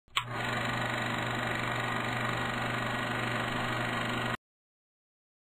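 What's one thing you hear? A film projector whirs and rattles steadily.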